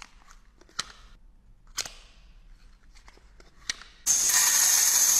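A plastic package crinkles and clicks in gloved hands.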